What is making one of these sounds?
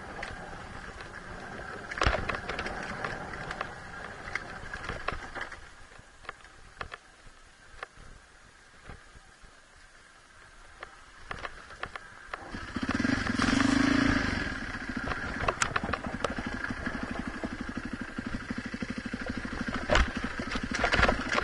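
Tyres crunch and bump over a rocky dirt trail.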